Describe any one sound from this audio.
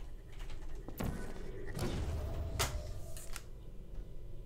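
A portal gun fires with a sharp zap.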